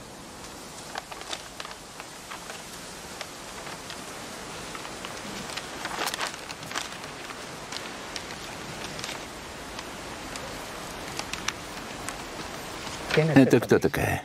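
Paper rustles and crinkles as sheets are handled.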